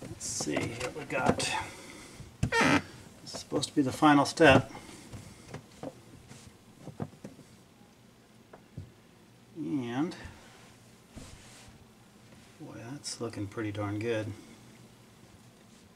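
A cloth rubs and squeaks over a plastic cover.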